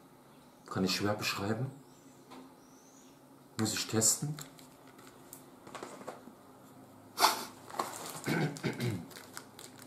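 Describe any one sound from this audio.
A plastic cup crinkles in a young man's hands.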